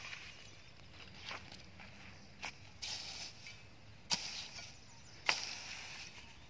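A rake scrapes and rustles through dry straw.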